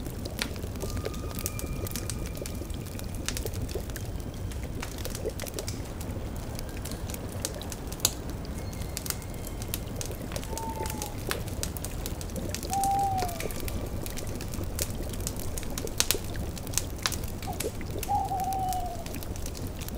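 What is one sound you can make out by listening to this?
A cauldron bubbles softly.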